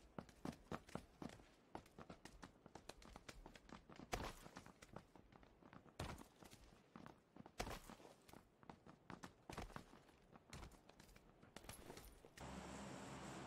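Sharp gunshots crack repeatedly nearby.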